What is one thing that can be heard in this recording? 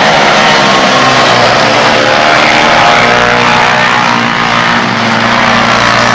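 Motorcycle engines rise and fall in pitch as riders shift gears.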